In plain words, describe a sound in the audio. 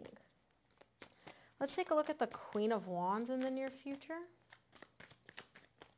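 Playing cards riffle and flick softly as they are shuffled.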